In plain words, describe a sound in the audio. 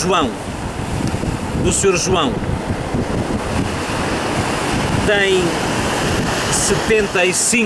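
A middle-aged man speaks calmly close by.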